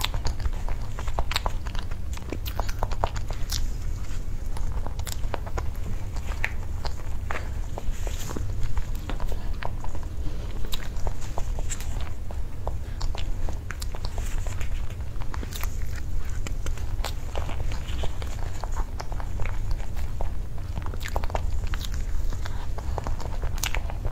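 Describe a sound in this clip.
A young woman chews soft food close to a microphone with wet smacking sounds.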